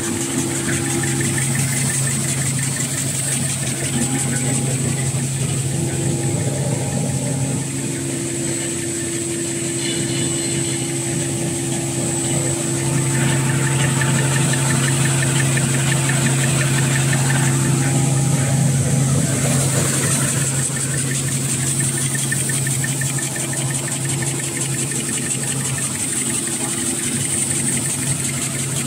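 A large machine hums and whirs steadily in an echoing hall.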